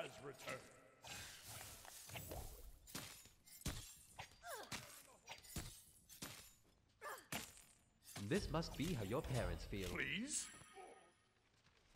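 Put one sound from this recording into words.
Weapons clash and blows thud in a close fight.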